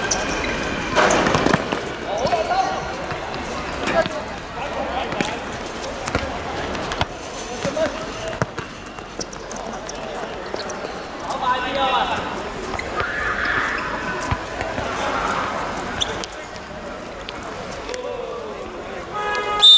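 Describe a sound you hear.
Men shout to each other during play outdoors.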